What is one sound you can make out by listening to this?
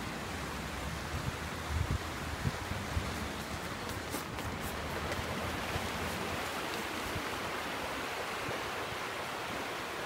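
Footsteps of several runners patter on a paved path.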